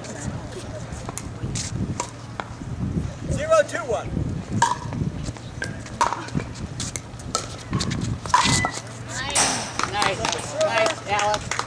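Paddles hit a plastic ball back and forth with sharp pops.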